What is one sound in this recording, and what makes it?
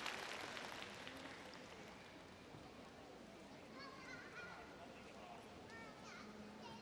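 A crowd applauds in a large echoing arena, fading slowly.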